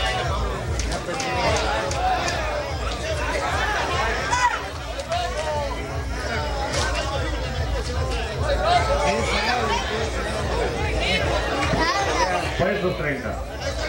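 A crowd of men shouts and cheers excitedly all around.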